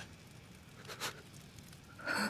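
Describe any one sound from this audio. A young man grunts through clenched teeth.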